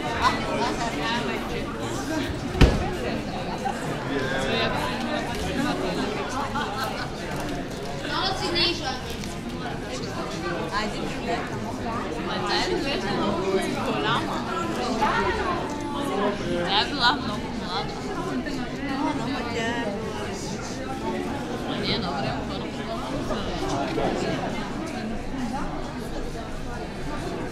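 A crowd of men and women chatter all around in an echoing courtyard.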